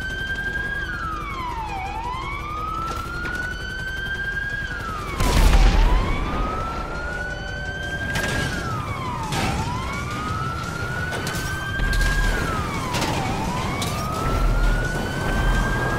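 A police siren wails, rising and falling steadily.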